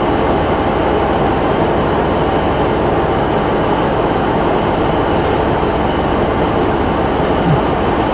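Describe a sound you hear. A train slowly pulls away.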